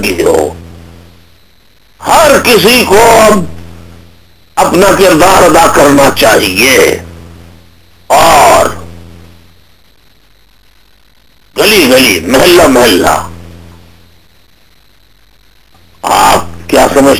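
A man speaks in bursts over a phone line, with pauses between phrases.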